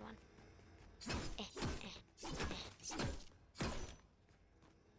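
A pickaxe strikes a hard object with sharp knocks.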